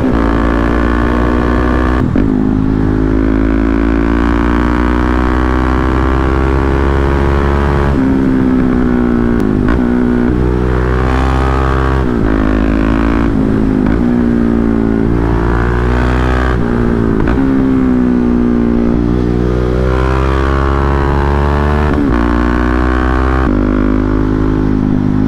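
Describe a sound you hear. A motorcycle engine roars close by, revving up and dropping again and again.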